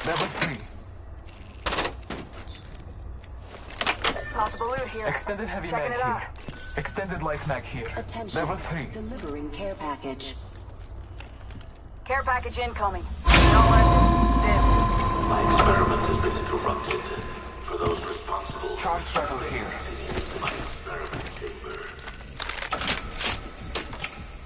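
Game sound effects click and clatter.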